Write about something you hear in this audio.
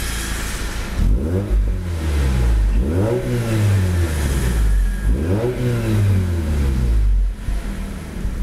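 A car engine revs up sharply three times and drops back each time.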